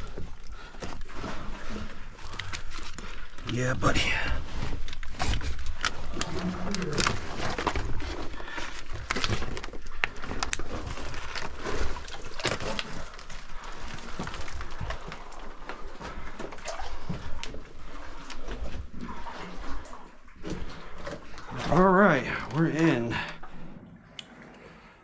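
Loose rocks crunch and clatter underfoot.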